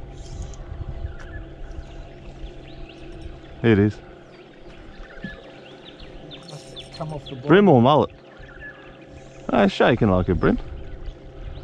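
A fishing reel whirs as line is wound in.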